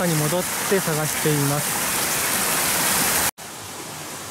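A shallow stream trickles over rocks outdoors.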